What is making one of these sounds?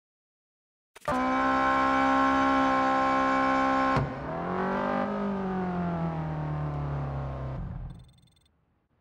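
A sports car engine roars loudly, then drops in pitch as it slows.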